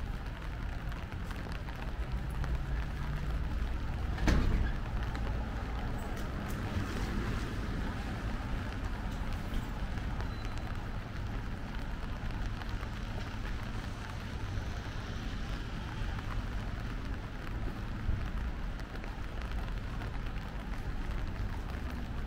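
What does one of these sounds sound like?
A low, steady rumble of distant city traffic carries through the night air.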